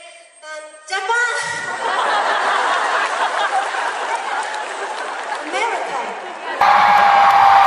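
A large crowd cheers and screams.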